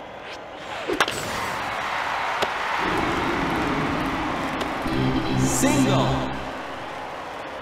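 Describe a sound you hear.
A crowd cheers and roars in a large stadium.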